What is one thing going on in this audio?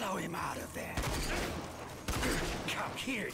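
A rifle fires loud single shots that echo.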